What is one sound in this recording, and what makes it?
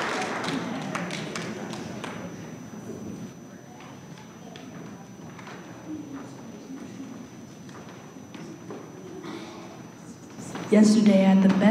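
People chatter quietly in a large echoing hall.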